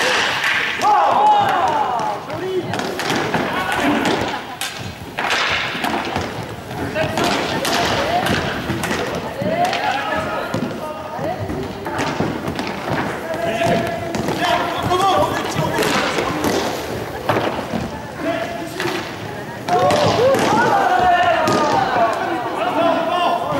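Spectators cheer and shout.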